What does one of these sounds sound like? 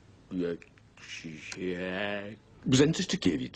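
A man mutters and groans in frustration.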